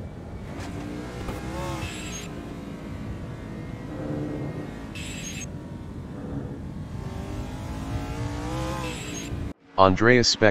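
A race car engine roars loudly, rising and falling in pitch as it revs.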